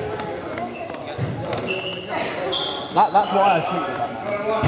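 Trainers squeak sharply on a hard floor.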